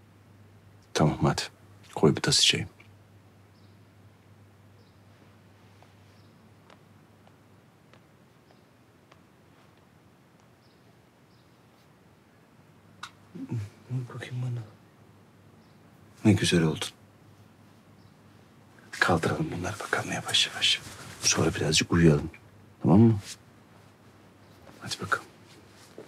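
A man speaks softly and gently, close by.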